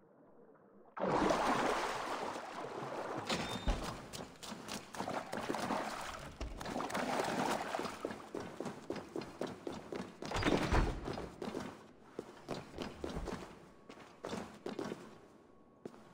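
Footsteps tread on stone in an echoing passage.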